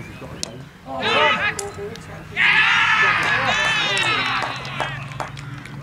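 Men shout and cheer outdoors at a distance.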